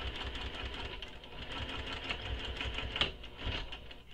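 A sewing machine runs with a rapid whirring stitch.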